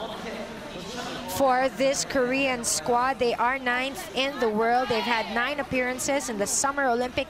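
Young women talk together nearby.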